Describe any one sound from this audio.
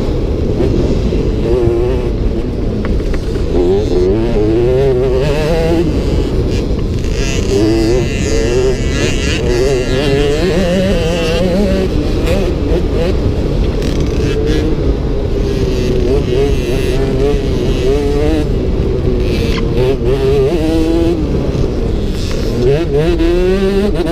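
Wind rushes past noisily outdoors.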